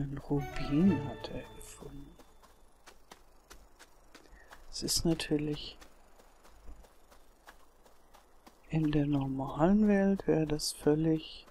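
Footsteps run over grass.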